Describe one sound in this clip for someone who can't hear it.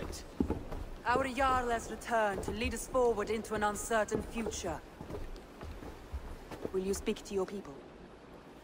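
A woman speaks calmly and formally.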